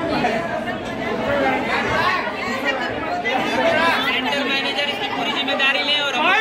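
A crowd of young men and women talk and shout excitedly over one another.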